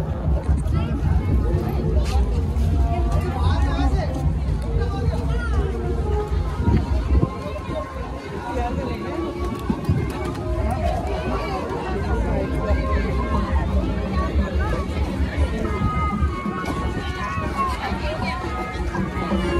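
A crowd chatters in the open nearby.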